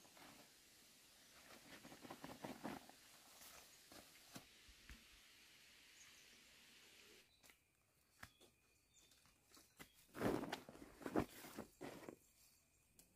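A plastic sack rustles and crinkles.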